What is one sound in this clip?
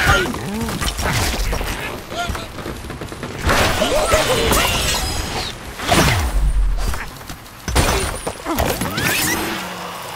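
Cartoon birds squawk and chirp as they fly.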